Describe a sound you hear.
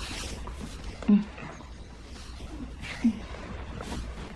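A woman moans softly close by.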